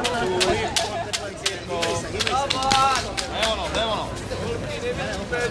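A crowd of people shouts and cheers loudly outdoors.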